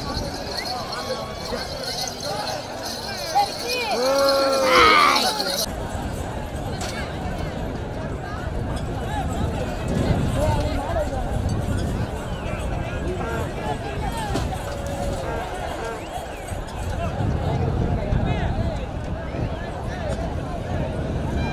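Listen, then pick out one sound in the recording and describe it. A large outdoor crowd shouts and cheers.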